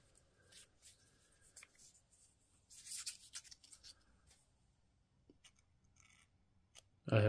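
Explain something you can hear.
Fingers rub and scrape against smooth plastic battery cells, up close.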